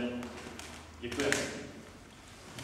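A young man speaks briefly in an echoing hall.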